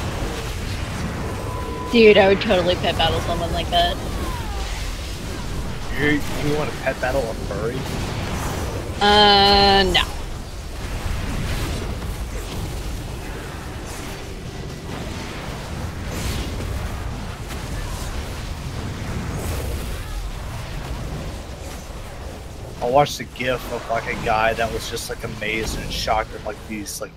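Spell effects and combat sounds from a game crackle and whoosh throughout.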